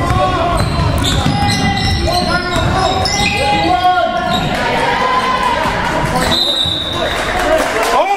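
Young players and spectators shout and call out.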